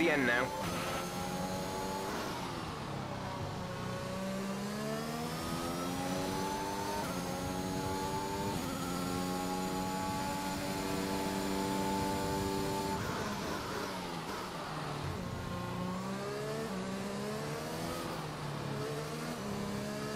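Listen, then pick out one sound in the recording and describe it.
A racing car engine screams, rising in pitch through the gears and dropping as it slows for corners.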